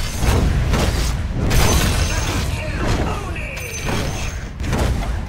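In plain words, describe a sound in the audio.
Game spell effects crackle and whoosh during a battle.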